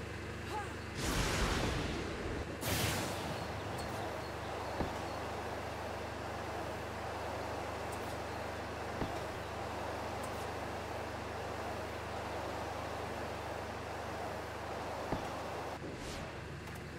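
A jetpack roars steadily with bursts of thrust.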